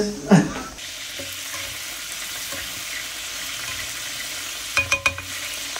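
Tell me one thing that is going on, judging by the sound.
A spatula scrapes against a frying pan.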